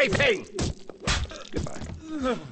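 A heavy wrench strikes a body with a wet thud.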